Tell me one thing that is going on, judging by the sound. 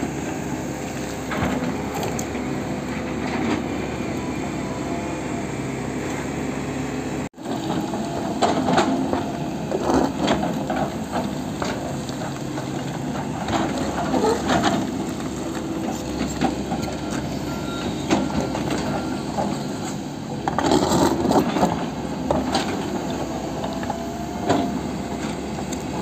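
A diesel excavator engine rumbles steadily close by.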